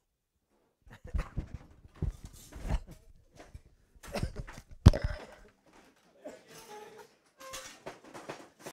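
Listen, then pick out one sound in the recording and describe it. Clothing rustles and thumps against a microphone.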